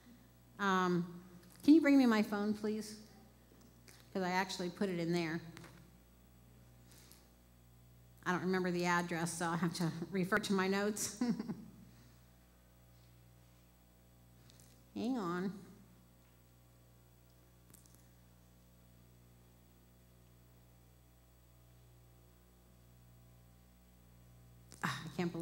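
A woman reads aloud through a microphone in a large echoing room, with pauses.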